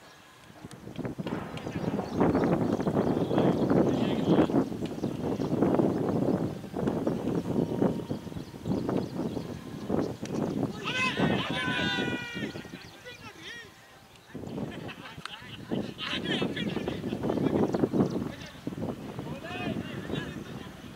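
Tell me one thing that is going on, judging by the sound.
Men talk and call out across an open field.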